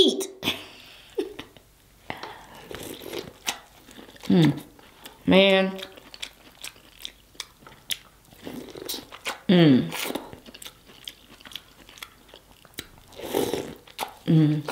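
A woman bites and chews food with wet, crunchy sounds close to a microphone.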